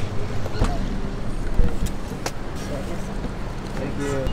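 A car's boot lid clicks open.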